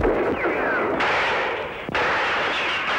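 Gunshots fire in quick succession.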